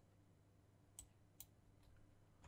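Short game menu clicks sound.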